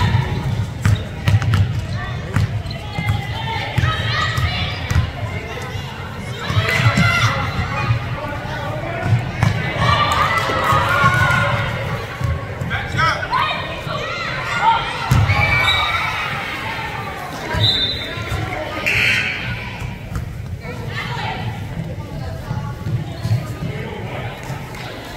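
A basketball bounces on a wooden gym floor.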